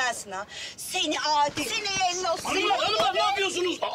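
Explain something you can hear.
A middle-aged woman shouts loudly, close by.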